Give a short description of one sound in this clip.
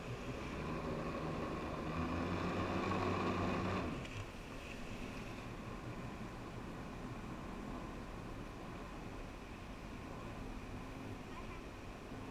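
A motorboat engine drones steadily, loudest at first and then quieter.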